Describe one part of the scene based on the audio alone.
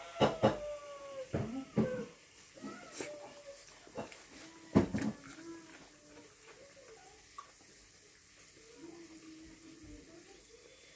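Fingers scrape and tap food on a metal plate.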